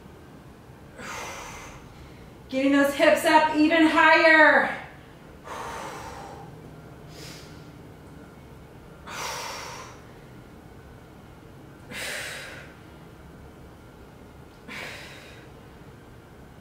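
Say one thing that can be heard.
A young woman breathes out hard with each lift, close by.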